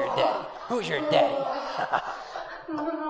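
A man speaks in a taunting voice, close by.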